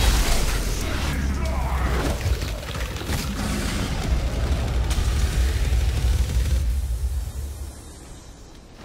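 A deep, heavy rumble roars and crackles, then dies away.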